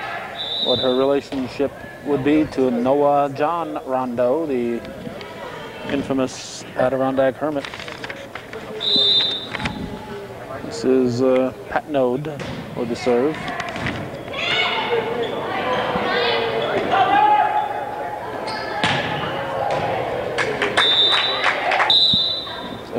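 A volleyball is smacked by hands.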